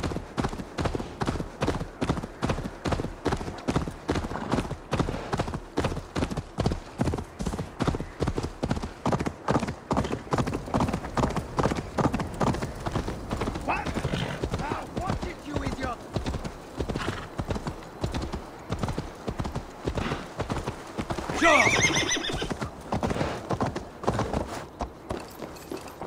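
A horse's hooves pound steadily along the ground at a gallop.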